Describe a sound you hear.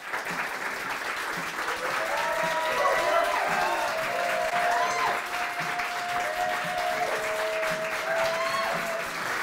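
An audience cheers and whoops.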